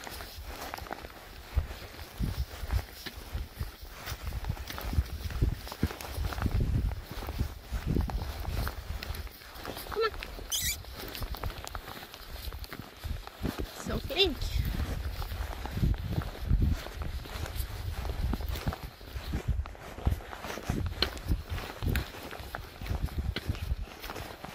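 Wind gusts and rumbles across open ground outdoors.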